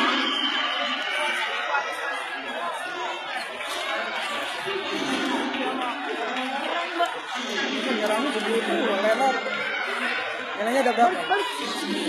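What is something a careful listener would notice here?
Kicks thud against padded body protectors.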